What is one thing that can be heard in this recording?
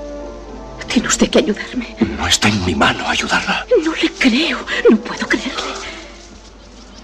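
A man cries out desperately, close by.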